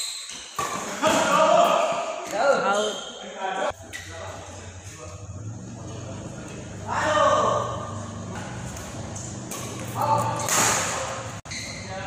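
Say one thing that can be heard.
Men call out across a court in an echoing hall.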